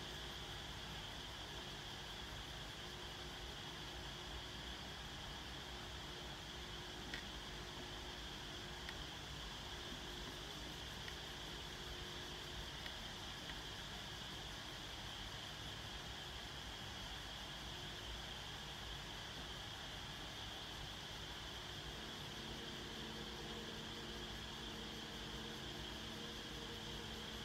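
An electric fan whirs steadily nearby.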